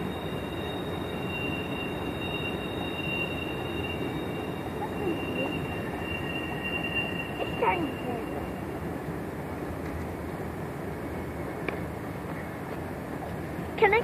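A train rumbles steadily along tracks in the distance.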